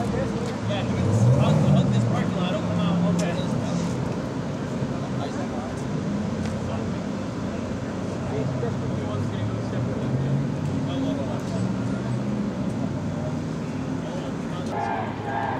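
Vehicle engines rumble steadily in the distance.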